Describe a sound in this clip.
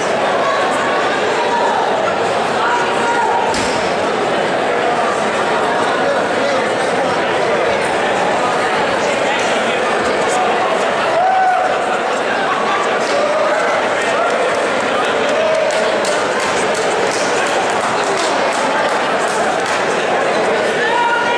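A crowd murmurs and chatters loudly in a large echoing hall.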